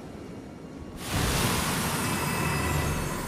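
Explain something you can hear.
A soft shimmering magical whoosh swells up suddenly and stays loud.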